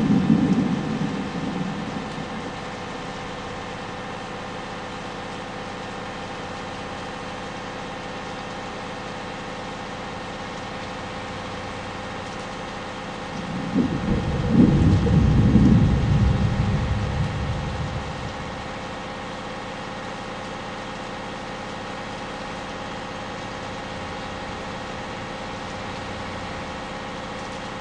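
A bus engine hums steadily at high speed.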